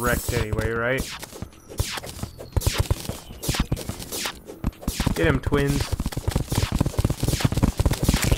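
Quick electronic game hit sounds repeat rapidly.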